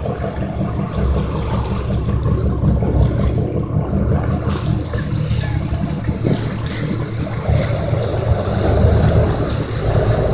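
Wind buffets the microphone with a deep, steady rumble.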